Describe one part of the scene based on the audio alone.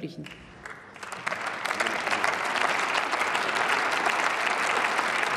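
A large crowd applauds in a big echoing hall, swelling and then holding steady.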